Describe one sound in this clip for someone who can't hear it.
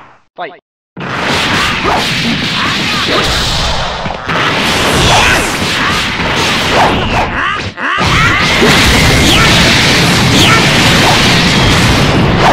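Rapid punches and kicks thud and crack.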